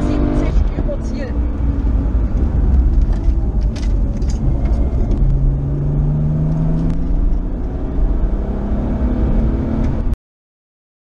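A car engine roars steadily from inside the car, rising and falling in pitch as it drives fast.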